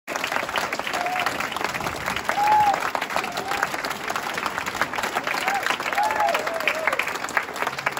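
A crowd of men and women cheers and whoops.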